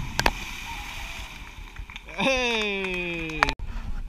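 Water churns and splashes around a swimmer.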